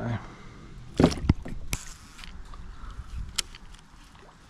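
A paddle knocks against a plastic kayak hull a few times.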